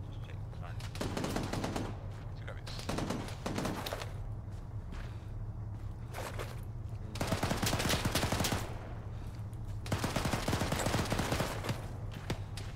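Gunfire crackles in bursts.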